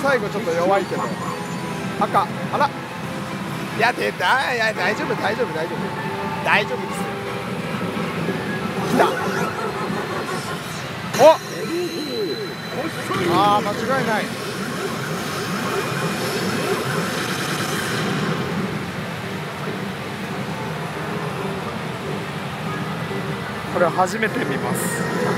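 A pachinko machine plays loud electronic music and sound effects.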